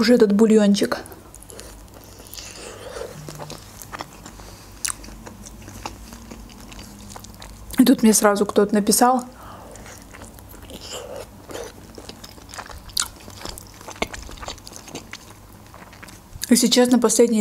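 A young woman chews soft food with wet smacking sounds close to a microphone.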